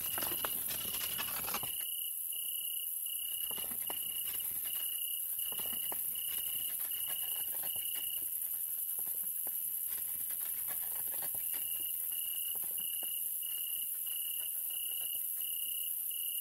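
Wheels of a pallet jack rumble across a concrete floor.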